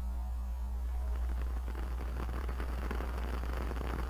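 A long lighter clicks.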